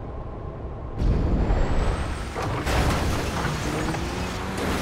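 A car bursts out of the water with a loud crash.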